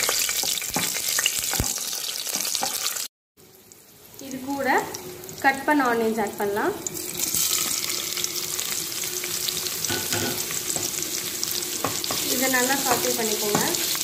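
A wooden spatula scrapes against a pot.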